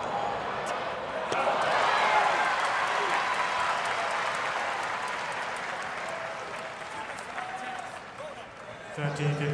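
A large crowd applauds and cheers in an open stadium, then slowly fades.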